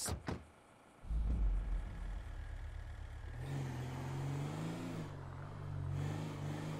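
A car engine starts and runs, rising as the car pulls away.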